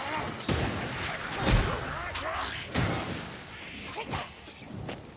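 A heavy weapon strikes flesh with loud, heavy thuds.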